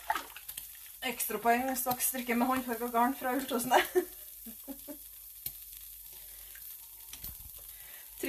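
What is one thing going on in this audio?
Water splashes and drips as wet yarn is lifted and dropped into a pot.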